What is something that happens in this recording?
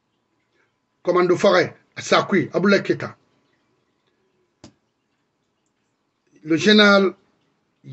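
A middle-aged man speaks emphatically and close to a microphone, with pauses.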